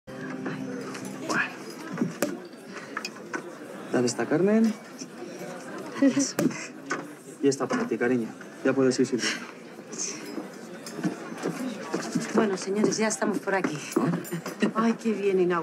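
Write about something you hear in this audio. Several women and men chat and laugh nearby.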